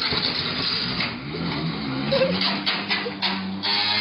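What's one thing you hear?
A scooter crashes into a wall.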